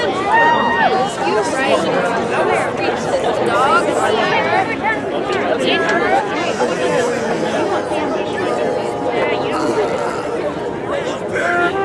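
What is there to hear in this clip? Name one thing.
A brass and woodwind band plays a lively tune outdoors.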